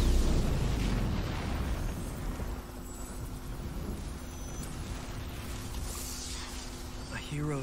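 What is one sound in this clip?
Electricity crackles and sizzles.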